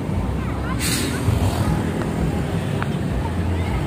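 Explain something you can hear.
A motorcycle engine rumbles past close by.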